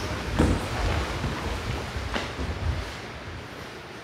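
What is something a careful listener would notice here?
Stiff cloth uniforms rustle as people stand up.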